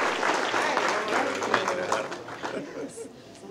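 A crowd murmurs and applauds in a large hall.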